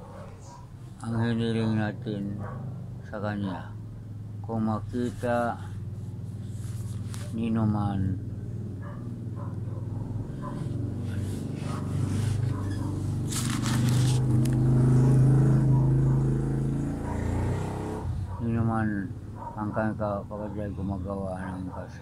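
An elderly man speaks calmly, close by, in short bursts.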